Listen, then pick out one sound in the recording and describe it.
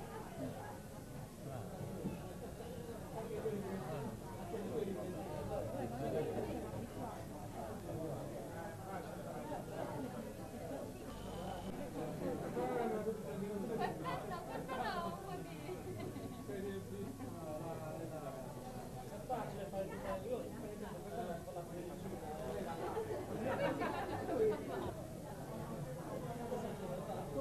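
A crowd of men and women chatters loudly all around in a busy room.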